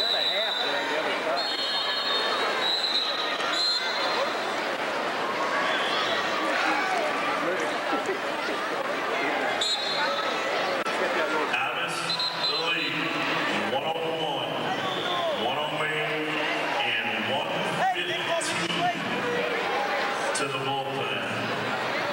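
A crowd of spectators talks and cheers in a large echoing hall.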